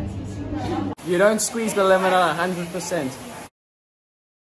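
A young man speaks close to the microphone.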